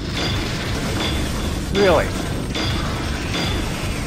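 A monster snarls and growls close by.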